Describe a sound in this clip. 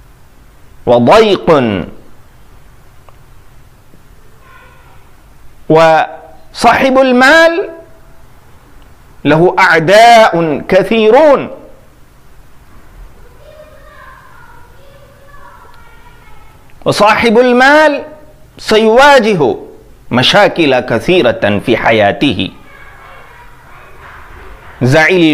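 A man recites in a chanting voice, close to a microphone, with pauses between lines.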